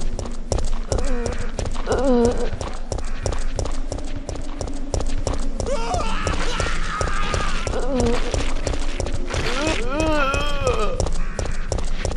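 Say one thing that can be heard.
Zombies moan and groan.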